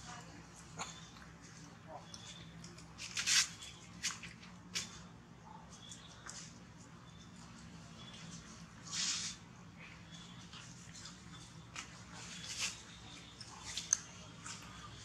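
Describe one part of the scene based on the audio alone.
Fruit peel rustles and crackles in a monkey's hands.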